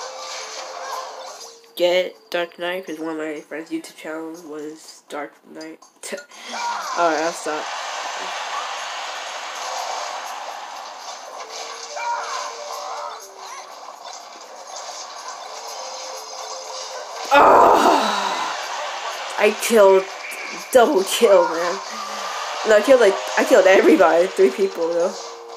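Fighting game sound effects and music play from a small speaker.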